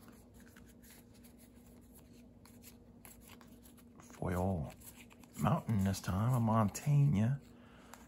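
Playing cards slide and tap against each other as hands sort them.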